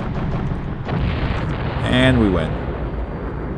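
A blast booms and crackles.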